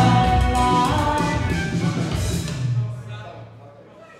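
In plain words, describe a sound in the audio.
A band plays loud amplified music in an echoing hall, then stops abruptly.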